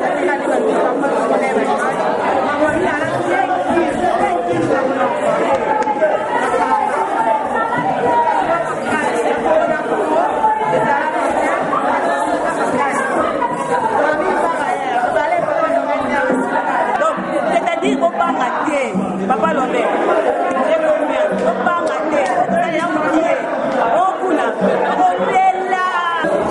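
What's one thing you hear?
A crowd chatters and sings.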